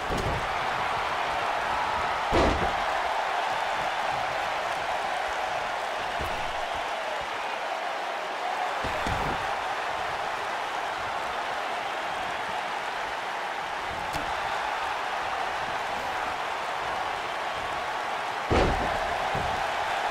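A large crowd roars steadily in a big arena.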